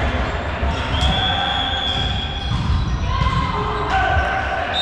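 A volleyball is hit with a sharp slap.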